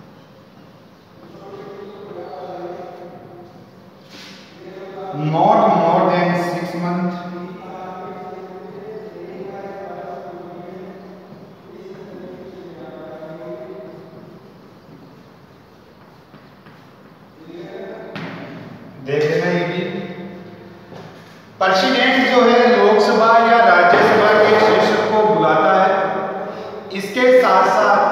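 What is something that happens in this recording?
A young man speaks loudly and clearly, as if teaching.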